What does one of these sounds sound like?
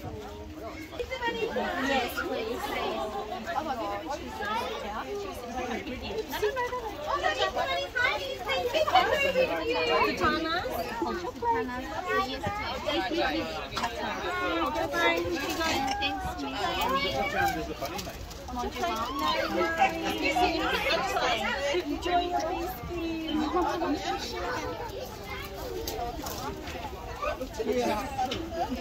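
Young children chatter and call out nearby.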